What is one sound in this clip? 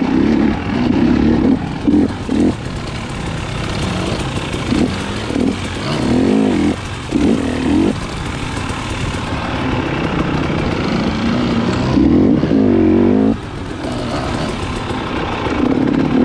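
A dirt bike engine revs and drones up close, rising and falling in pitch.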